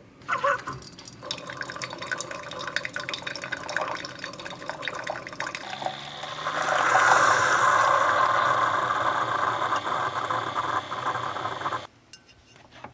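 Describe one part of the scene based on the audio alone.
Coffee trickles into a mug.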